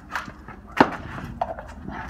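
A plastic cup knocks against concrete.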